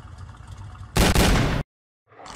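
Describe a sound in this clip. A revolver fires a loud shot.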